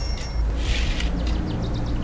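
Curtains swish softly as they are pulled open.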